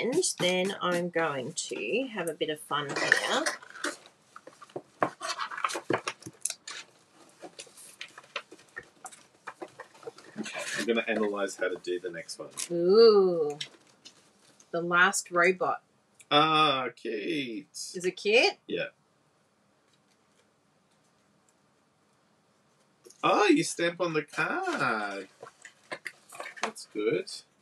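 Paper rustles and taps as cards are handled.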